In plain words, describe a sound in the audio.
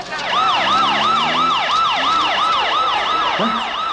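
A crowd of men shouts and jostles close by.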